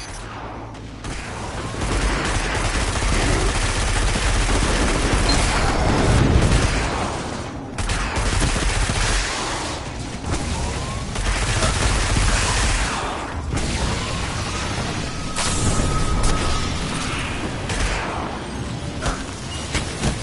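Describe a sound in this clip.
Guns fire in rapid bursts with loud blasts.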